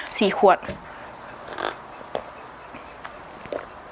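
A young woman slurps a drink.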